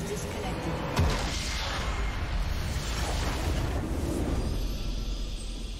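A loud game explosion booms and rumbles.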